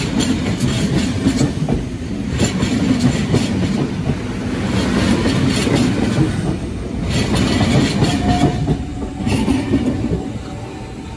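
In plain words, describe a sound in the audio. A passenger train rumbles past close by.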